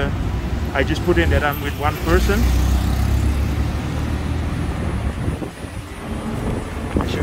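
A small vehicle engine rumbles steadily while driving.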